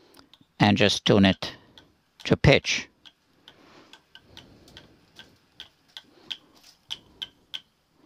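A bass tuning peg clicks softly as it is turned.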